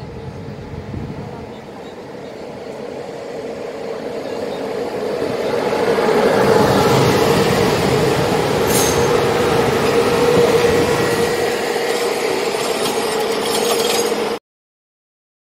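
An electric train approaches and rumbles loudly past close by.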